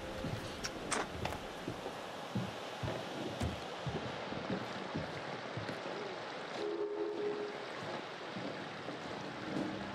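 Footsteps crunch on snow as a young man walks away.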